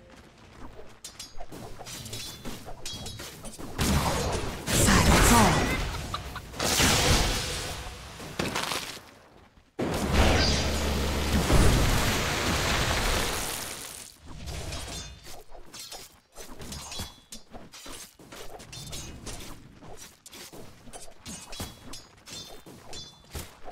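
Weapons clash in quick, sharp hits.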